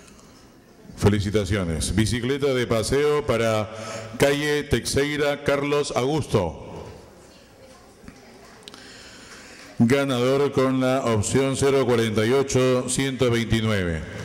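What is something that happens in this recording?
An elderly man speaks loudly and with animation.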